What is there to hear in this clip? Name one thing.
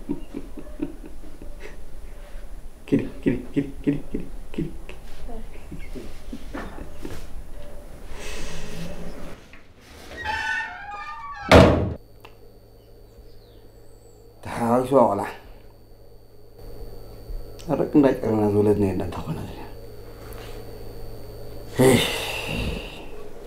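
An elderly man talks with animation close by.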